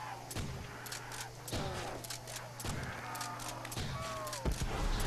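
A shotgun fires loud blasts again and again.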